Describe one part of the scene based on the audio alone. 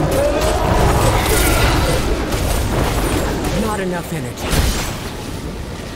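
A monster roars and snarls.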